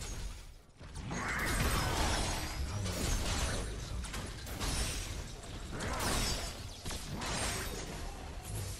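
Energy blasts crackle and explode in a fight.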